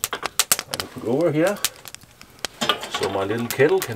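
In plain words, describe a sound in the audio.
A metal kettle clanks onto a grill.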